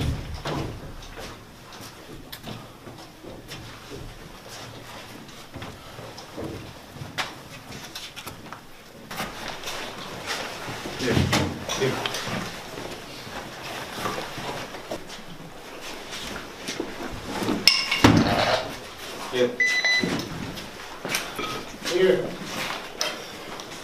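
Boots tread and scuff on a hard floor in an echoing corridor.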